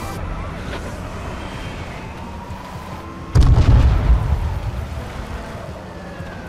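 A car engine rumbles as the car drives over rough ground.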